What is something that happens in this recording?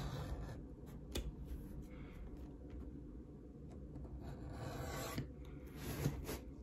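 A stitching awl pokes through leather with soft taps and scrapes.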